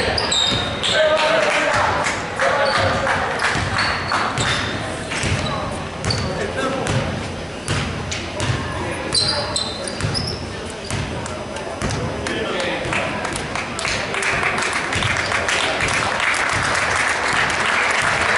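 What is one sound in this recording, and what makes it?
A basketball bounces on a hardwood floor.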